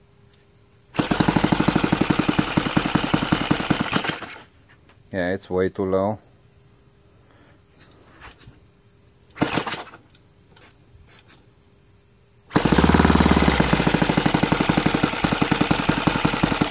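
A small model engine roars loudly at high speed.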